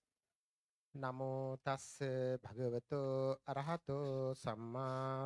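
A man chants loudly in a steady sung tone through a microphone.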